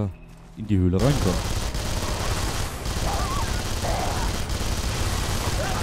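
A rifle fires rapid bursts of gunfire.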